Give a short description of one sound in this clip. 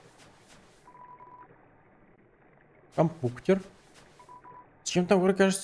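A game's text blips beep briefly.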